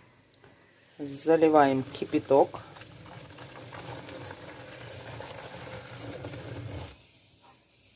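Water pours into a plastic bowl and splashes.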